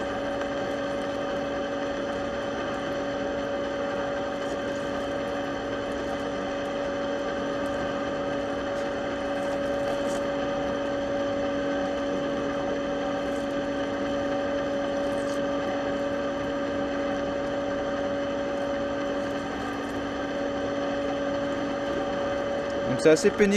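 A cutting tool scrapes and hisses against spinning metal.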